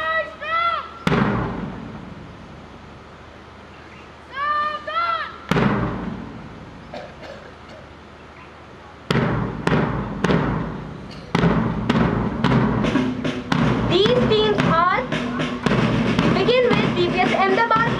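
Drums are struck in slow, loud beats outdoors.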